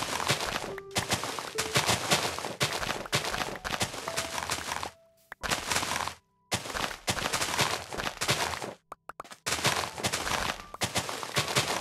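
Sugar cane stalks break with a crunchy, grassy sound.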